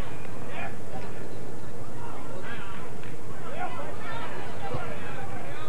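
Young men shout to each other across an open playing field in the distance.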